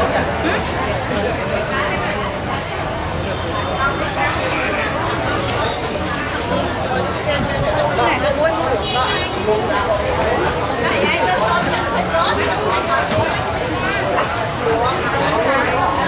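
A woman vendor talks with animation close by.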